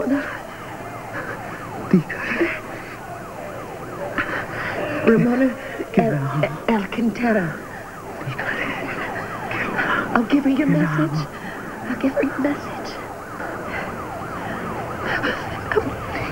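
A woman speaks urgently and with strain, close by.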